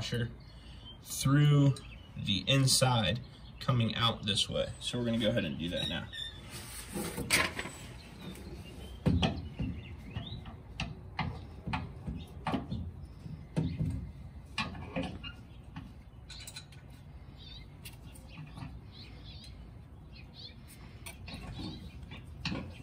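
Small metal parts click and knock as they are fitted by hand.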